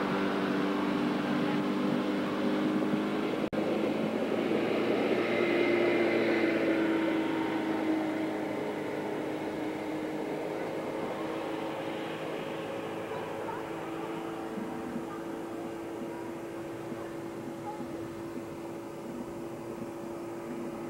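A motorboat engine drones steadily, slowly fading into the distance.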